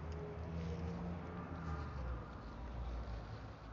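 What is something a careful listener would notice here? A plastic bag rustles close by.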